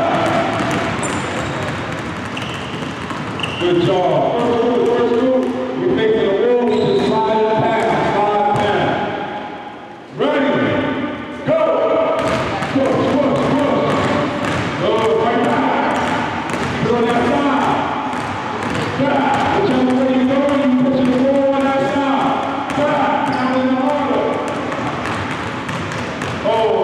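Basketballs bounce on a wooden gym floor.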